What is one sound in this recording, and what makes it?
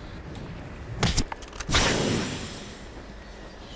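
Heavy blows thud and whoosh in a close fight.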